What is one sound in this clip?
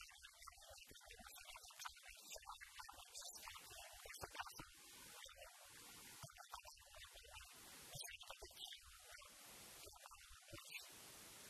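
An elderly man speaks with animation into a microphone, close by.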